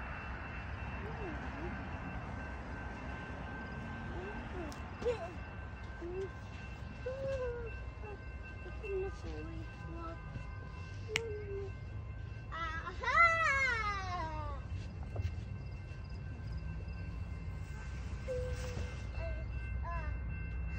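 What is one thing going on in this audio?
A young child talks nearby in short bursts.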